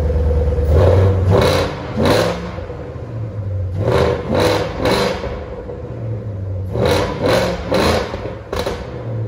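A car engine revs sharply several times.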